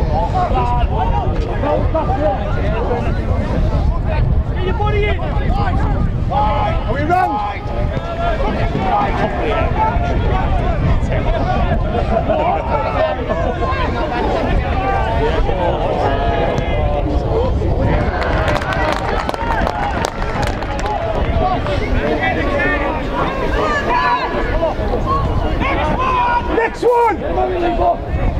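A crowd of spectators shouts and chatters outdoors.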